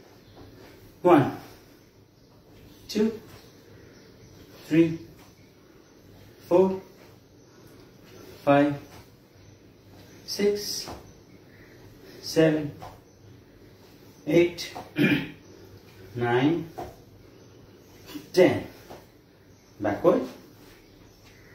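A man calls out short words at a steady pace, close by.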